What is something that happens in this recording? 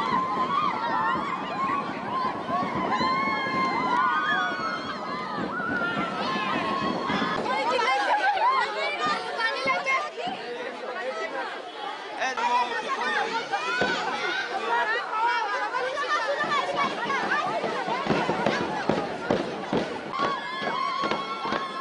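A crowd of girls sing together loudly.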